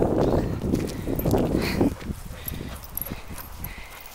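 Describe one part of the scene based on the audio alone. A dog pants with its mouth open.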